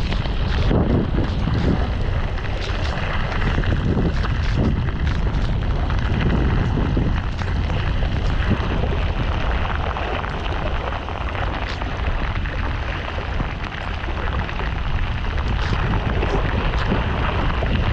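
Strong wind roars and buffets loudly.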